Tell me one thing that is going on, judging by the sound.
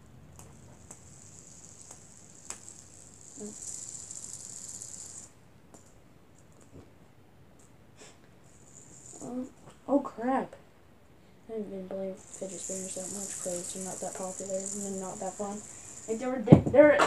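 A fidget spinner whirs softly.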